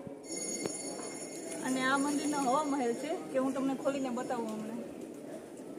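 A young woman speaks to the listener, close by.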